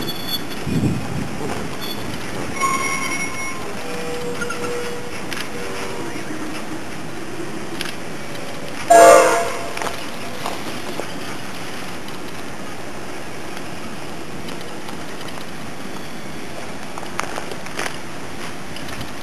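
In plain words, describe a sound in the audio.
A train rolls slowly past on the rails, its wheels clacking.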